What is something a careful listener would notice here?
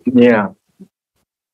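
A man says a few words briefly over an online call, then falls silent.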